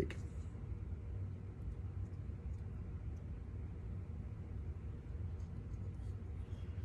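Small plastic parts click softly in a man's hands.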